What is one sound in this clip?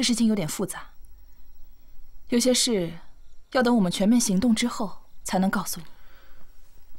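A young woman speaks calmly and quietly nearby.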